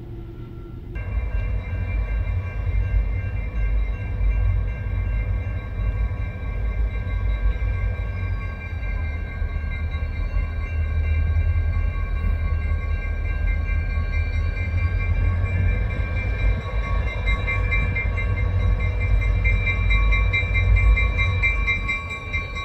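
A railway crossing bell rings steadily and rapidly.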